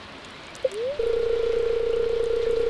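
A television plays a steady, buzzing tone.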